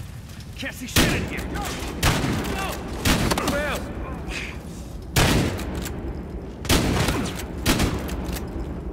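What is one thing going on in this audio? A shotgun fires loud blasts, one after another.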